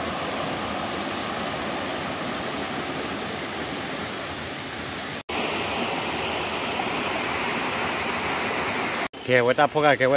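A rocky stream rushes and splashes steadily.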